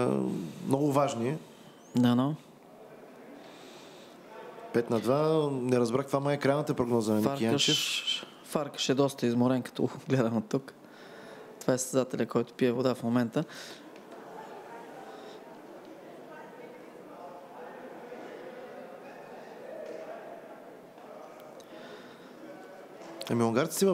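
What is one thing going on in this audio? A man talks loudly and with animation nearby, in an echoing hall.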